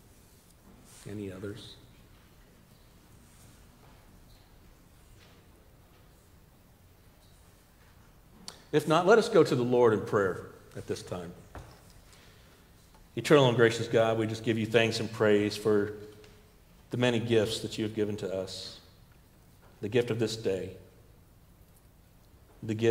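A middle-aged man speaks calmly and slowly through a microphone in a large echoing hall.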